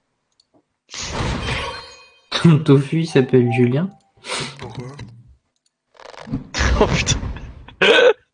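Magic spell effects whoosh and burst in short flurries.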